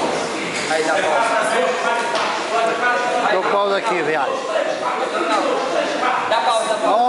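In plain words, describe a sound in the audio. Several men talk and call out nearby in a busy, echoing hall.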